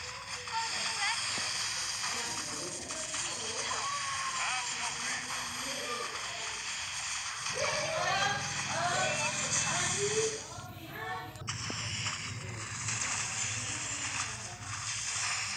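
Game battle sounds clash, crackle and boom steadily.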